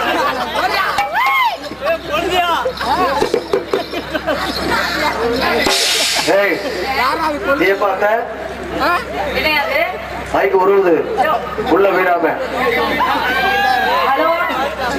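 A woman sings through a loudspeaker with a lively, wavering voice.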